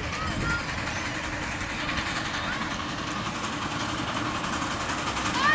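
A small steam locomotive chugs steadily nearby.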